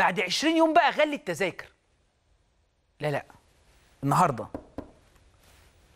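A middle-aged man speaks emphatically into a microphone, pausing between phrases.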